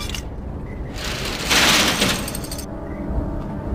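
A metal roller shutter rattles open.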